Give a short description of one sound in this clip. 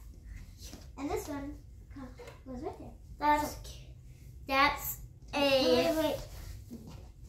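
Young girls talk with animation close by.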